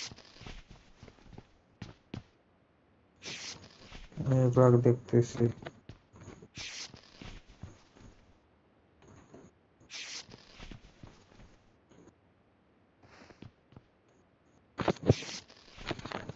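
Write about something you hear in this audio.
Cloth rustles softly as a bandage is wrapped.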